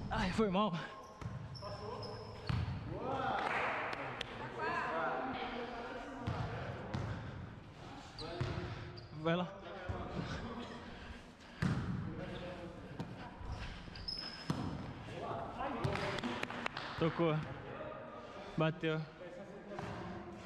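A ball thumps off hands and bounces on a hard floor.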